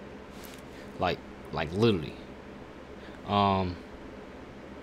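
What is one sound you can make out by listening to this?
A young man speaks in short bursts with animation, close by.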